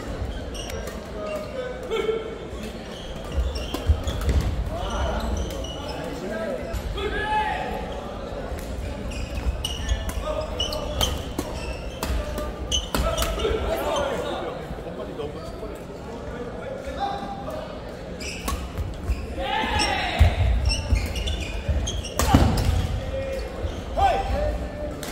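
A crowd of people chatter and cheer in the distance.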